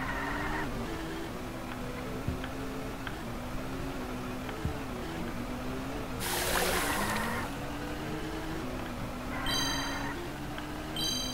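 A small kart engine hums and changes pitch as it speeds along.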